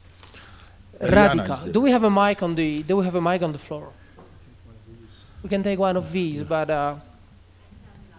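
An older man speaks steadily into a microphone.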